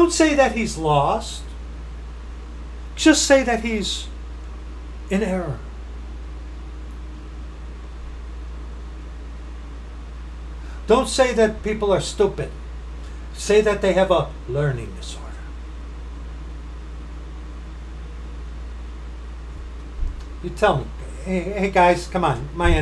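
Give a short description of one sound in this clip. A middle-aged man talks with animation close to a microphone, in short bursts with pauses.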